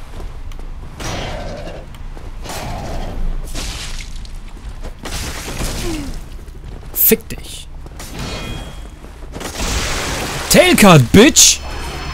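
Metal weapons clash and thud in a fight.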